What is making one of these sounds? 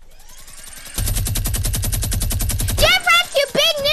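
A rapid-fire gun shoots a burst.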